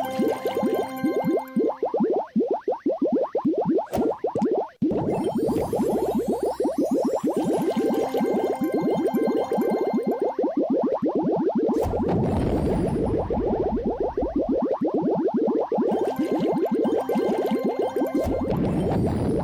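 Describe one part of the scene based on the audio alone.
Bubbles pop with quick bright chimes.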